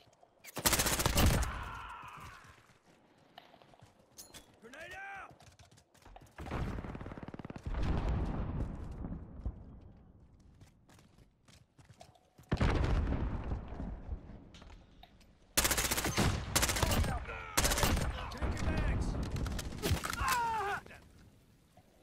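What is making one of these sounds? Gunshots fire in loud, sharp bursts.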